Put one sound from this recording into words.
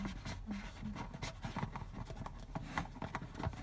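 Fingers rub and press on a plastic lid.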